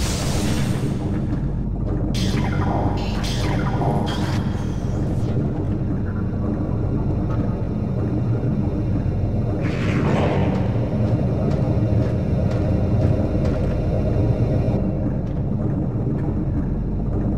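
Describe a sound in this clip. A deep mechanical hum drones steadily.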